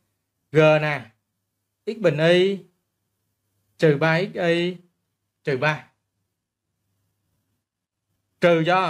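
A man speaks calmly and clearly into a close microphone, in short phrases.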